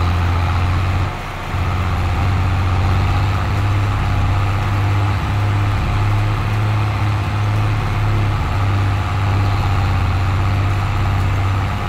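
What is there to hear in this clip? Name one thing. A tractor engine drones steadily at low pitch.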